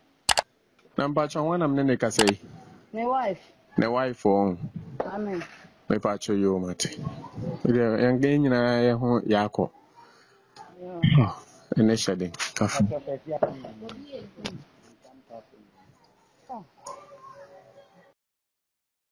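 A middle-aged man talks animatedly close by, outdoors.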